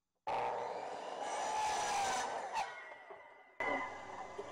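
A miter saw whirs and winds down.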